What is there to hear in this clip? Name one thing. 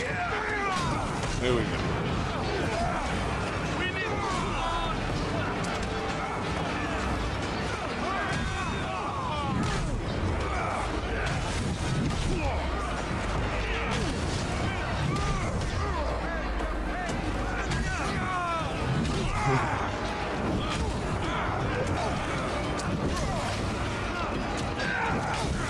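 Men shout and yell with effort as they fight.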